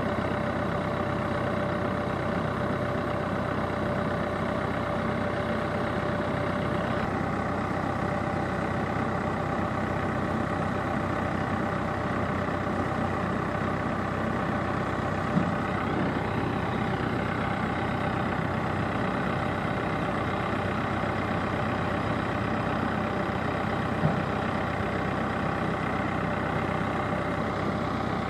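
A diesel engine of a backhoe loader rumbles and drones steadily.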